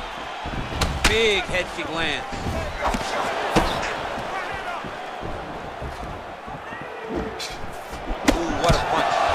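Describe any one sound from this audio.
Kicks and punches land on a body with sharp thuds.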